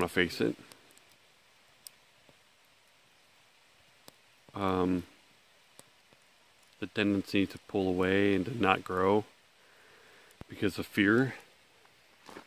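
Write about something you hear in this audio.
A man speaks calmly and close up, in short bursts with pauses.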